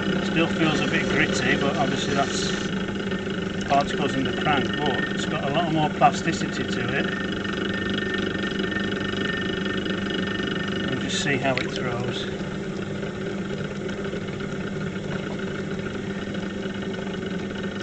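Wet clay squelches and rubs under hands on a spinning wheel.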